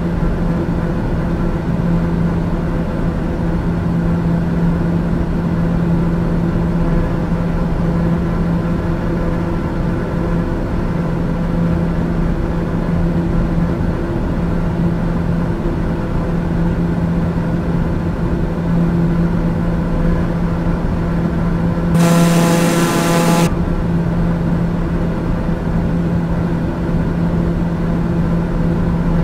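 An aircraft engine drones steadily inside a cabin.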